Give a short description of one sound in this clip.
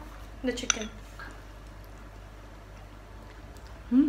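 A young woman eats with loud chewing and slurping.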